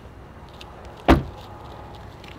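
A car door shuts with a thud.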